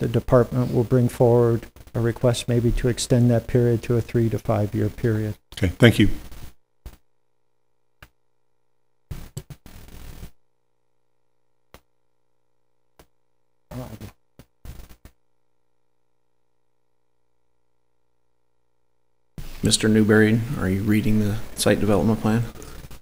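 A man speaks calmly into a microphone in a large room.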